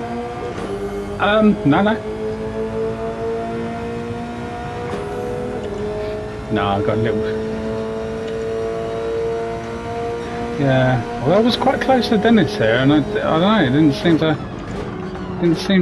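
A racing car engine drones steadily from inside the cabin.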